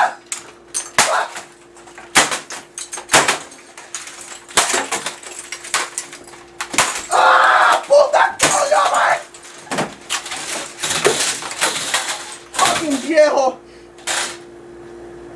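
A plastic keyboard bangs hard against something, again and again.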